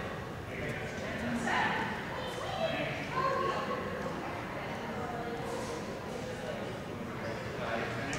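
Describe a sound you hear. A woman calls out to a dog.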